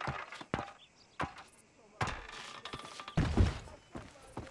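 Footsteps thud on a wooden ladder as a man climbs.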